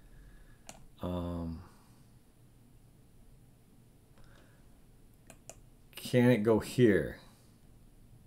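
A man speaks calmly and thoughtfully, close to a microphone.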